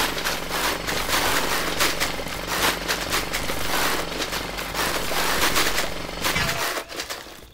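Stones and earth crunch and rattle as something digs repeatedly.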